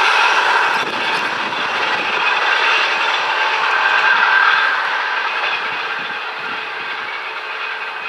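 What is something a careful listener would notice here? An electric train approaches slowly along the tracks.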